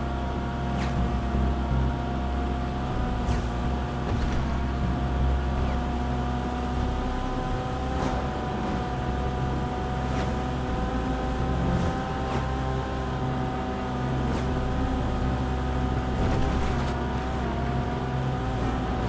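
Tyres roll on asphalt.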